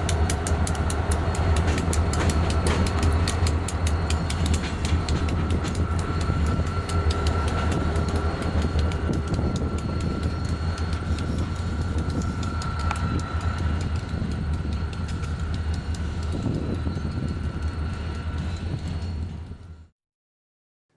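Train wheels click and clatter over the rail joints.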